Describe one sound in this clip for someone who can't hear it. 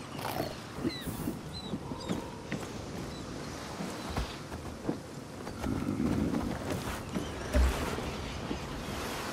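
Footsteps clatter quickly across a corrugated metal roof.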